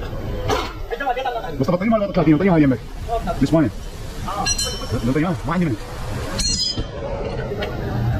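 A wrench clinks against metal parts.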